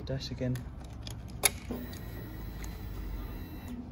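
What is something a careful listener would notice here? A key turns in a motorcycle ignition with a click.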